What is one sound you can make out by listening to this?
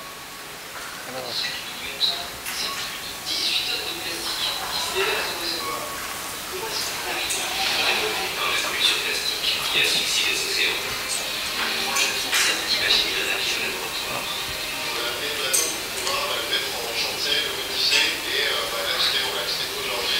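A man speaks calmly through loudspeakers in a large echoing room.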